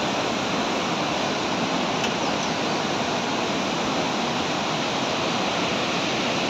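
Water rushes and roars loudly over a dam spillway and down rapids.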